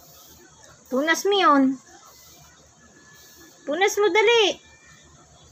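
A small child calls out.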